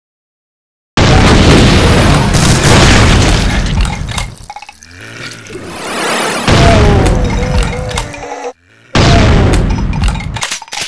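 A shotgun fires loud, booming blasts one after another.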